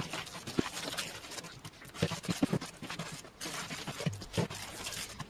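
Hands knead and squelch wet ground meat in a bowl.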